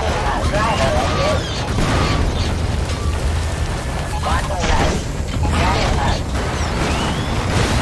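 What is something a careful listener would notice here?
Heavy mechanical footsteps thud on soft ground.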